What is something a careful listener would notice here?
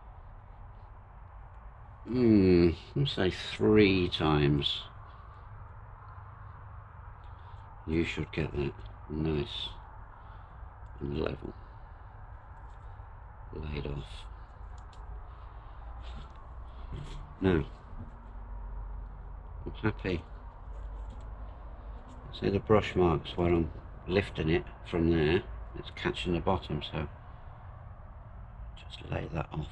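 A paintbrush brushes softly over a surface.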